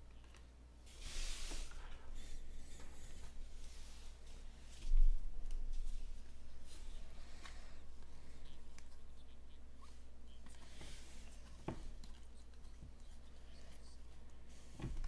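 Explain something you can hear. Cards rustle and slide against each other as hands shuffle through a stack.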